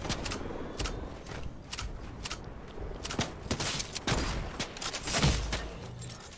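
Gunshots crack in quick bursts in a video game.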